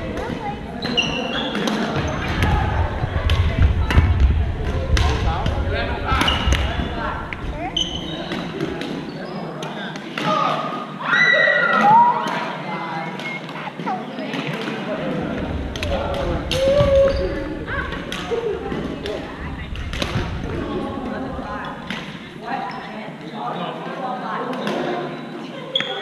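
Paddles knock a plastic ball back and forth in a large echoing gym.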